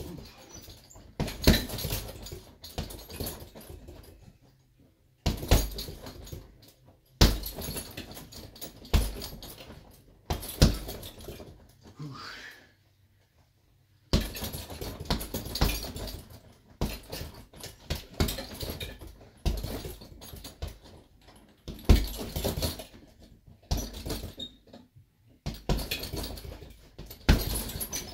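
Fists thud repeatedly against a heavy punching bag.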